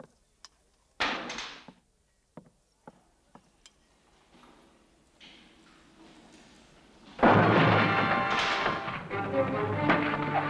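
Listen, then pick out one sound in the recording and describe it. A metal cell door rattles and clanks.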